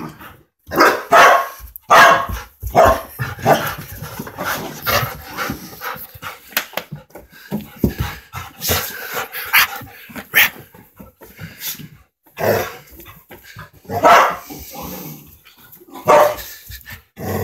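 Several dogs bark loudly.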